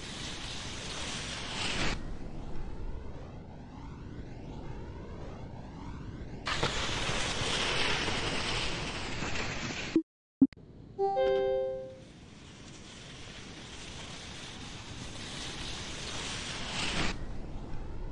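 Skis hiss down an icy track.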